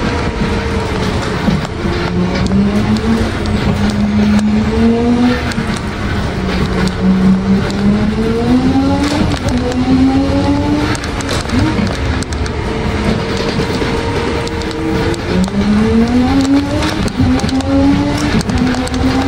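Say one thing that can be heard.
Tyres squeal on a tight bend.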